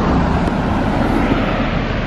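A car drives past.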